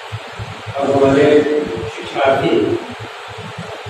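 A man speaks into a microphone over a loudspeaker, in a hall that echoes.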